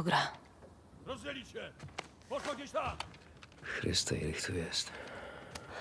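A man speaks urgently.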